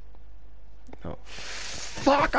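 A creeper hisses loudly.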